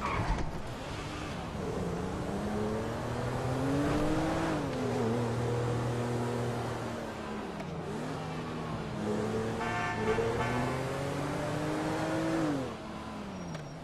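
A car engine revs up and down as the car accelerates and shifts gears.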